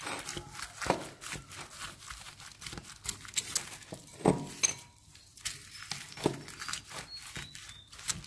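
Sticky slime squelches and crackles as fingers knead it.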